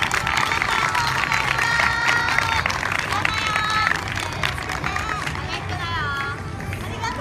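Several young women call out together in bright, high voices.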